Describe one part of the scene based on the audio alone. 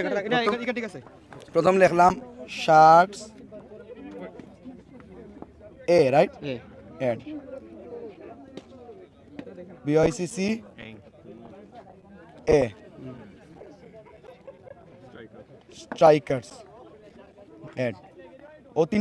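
Several men murmur and talk quietly nearby.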